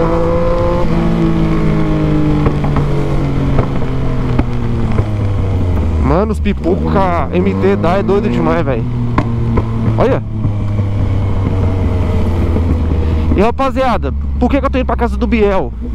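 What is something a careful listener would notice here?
A motorcycle engine hums steadily and changes pitch as it shifts gears.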